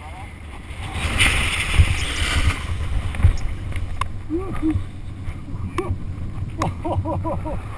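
A paraglider wing flaps and snaps as it collapses and reinflates.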